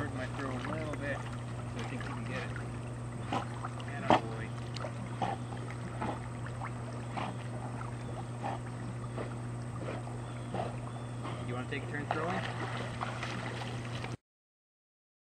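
A dog paddles and splashes through water close by.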